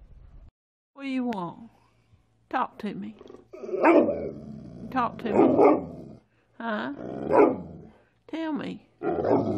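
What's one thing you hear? A dog howls and whines in long, wavering calls close by.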